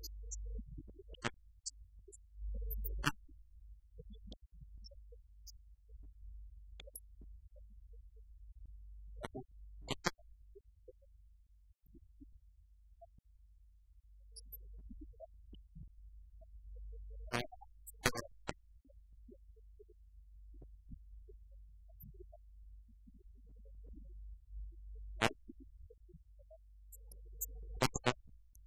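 A man talks quietly at a distance across a room.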